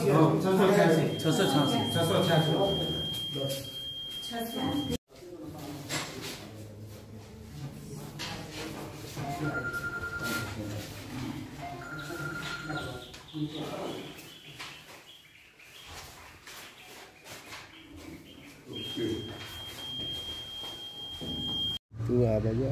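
A voting machine gives a long, high beep.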